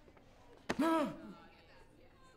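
An older man shouts out loudly.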